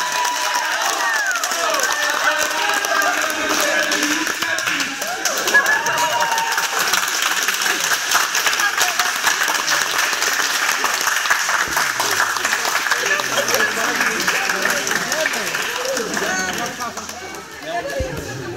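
A crowd claps along in a large echoing hall.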